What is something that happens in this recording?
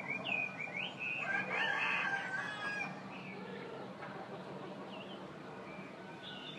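A caged bird sings loud, quick warbling phrases close by.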